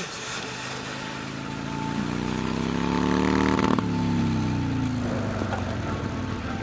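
A motorcycle engine roars closer, revving up.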